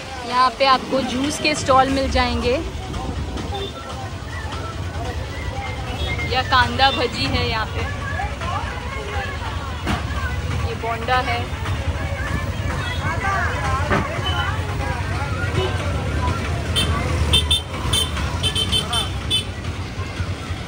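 Traffic and street bustle hum steadily outdoors.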